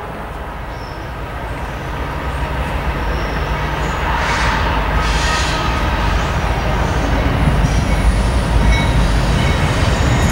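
A diesel freight locomotive rumbles as it approaches.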